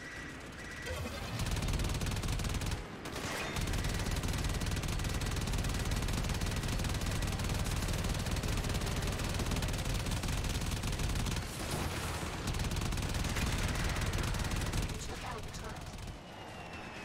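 A spacecraft engine roars steadily.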